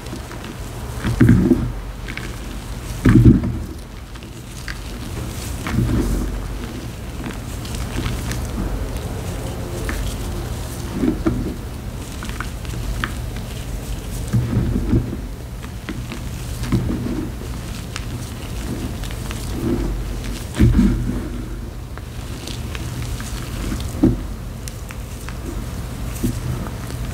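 Dry powdery chalk crunches softly as hands squeeze and crumble it.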